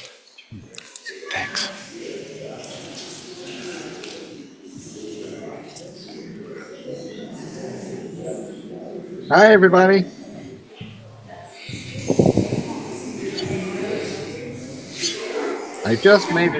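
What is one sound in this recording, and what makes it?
A congregation murmurs and chats in a large room.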